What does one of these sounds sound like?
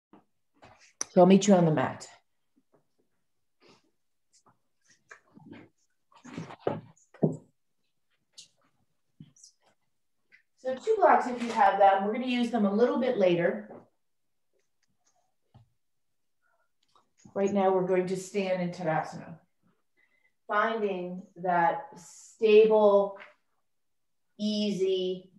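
A woman speaks calmly through a microphone, with short pauses.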